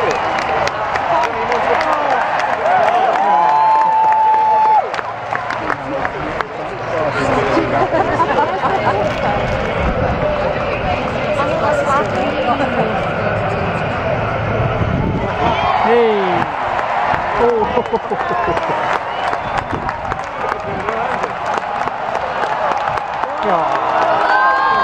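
A large outdoor crowd cheers and shouts loudly.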